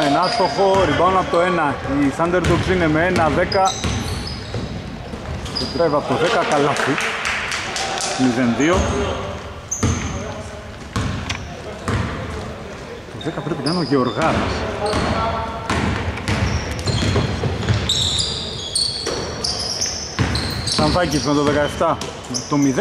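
Shoes squeak sharply on a wooden court.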